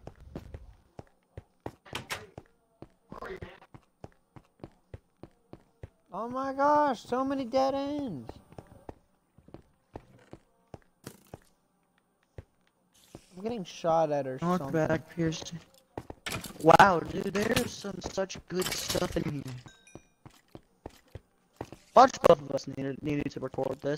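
Footsteps tap on a stone floor at a steady pace.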